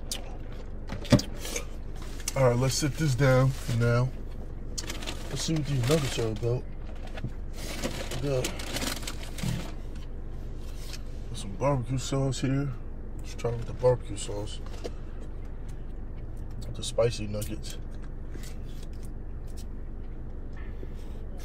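A paper wrapper crinkles.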